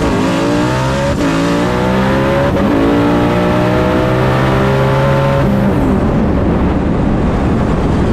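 Wind rushes past the open car.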